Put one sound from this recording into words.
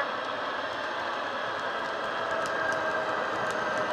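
Model train wheels click over the rail joints.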